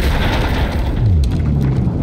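Metal debris clatters and falls.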